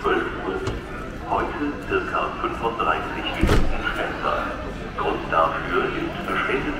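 People chatter in an echoing station hall.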